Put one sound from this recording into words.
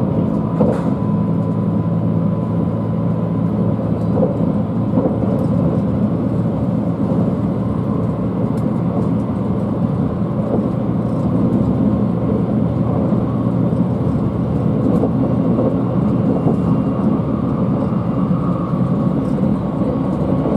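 Train wheels click over rail joints.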